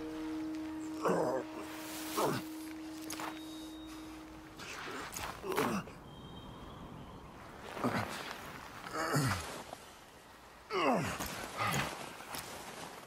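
A man groans and gasps in pain.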